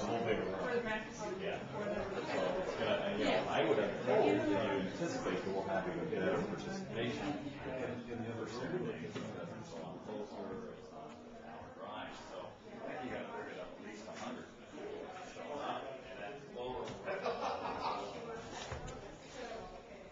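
A woman talks nearby in a calm voice.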